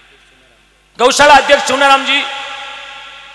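A man speaks loudly into a microphone over loudspeakers, with echo.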